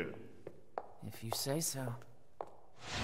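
A young woman speaks briefly and coolly.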